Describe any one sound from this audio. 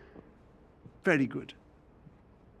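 A middle-aged man speaks warmly.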